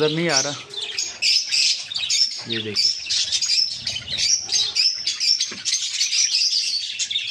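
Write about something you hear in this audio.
Budgies chirp and chatter busily, close by.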